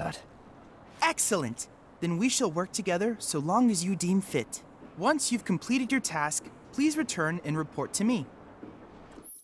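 A boy speaks brightly and politely.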